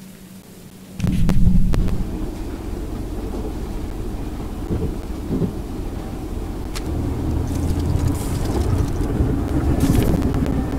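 A steam locomotive rumbles steadily with a low, heavy chugging.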